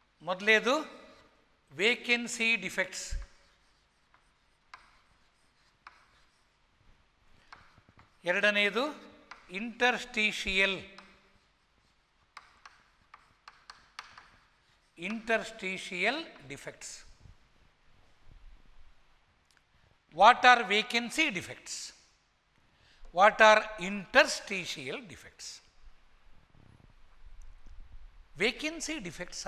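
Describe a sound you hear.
An older man speaks calmly and clearly through a close microphone, in short phrases with pauses.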